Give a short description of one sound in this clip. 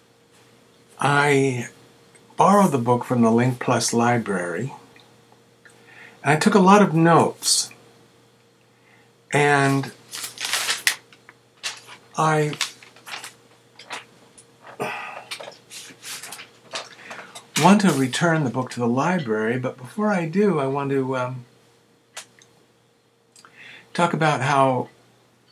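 A middle-aged man talks calmly and close to a microphone, as if on an online call.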